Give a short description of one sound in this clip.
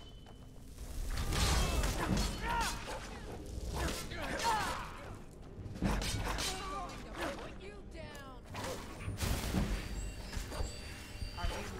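A man grunts and yells in pain.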